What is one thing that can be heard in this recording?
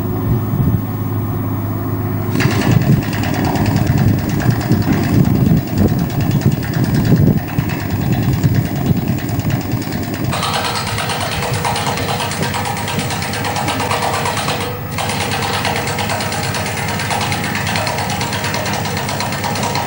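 A heavy machine's engine rumbles steadily.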